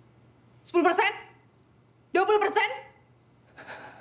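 A young woman speaks loudly and urgently close by.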